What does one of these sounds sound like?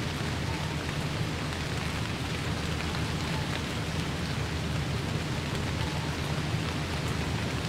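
Footsteps crunch on wet ground.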